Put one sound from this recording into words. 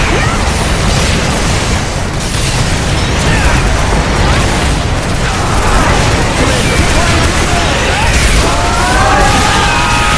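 Explosions rumble and boom continuously.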